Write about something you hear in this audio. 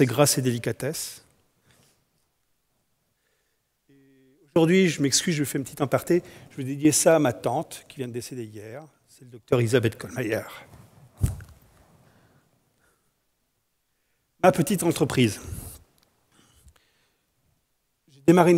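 A man speaks with animation to an audience through a microphone.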